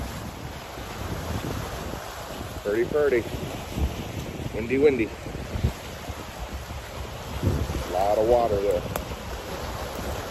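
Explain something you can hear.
Small waves lap against rocks along the shore.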